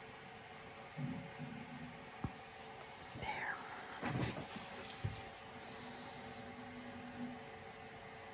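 A stick taps and scrapes on a canvas.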